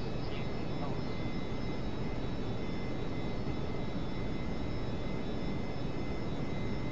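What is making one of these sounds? Aircraft engines drone steadily with a low roar.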